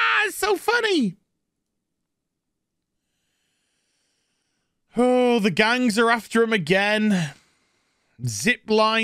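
A man talks with animation close to a microphone, in short bursts with pauses.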